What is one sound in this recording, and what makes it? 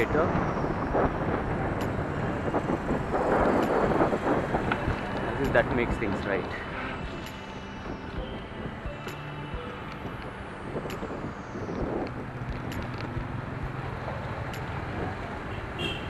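Wind rushes loudly across a close microphone.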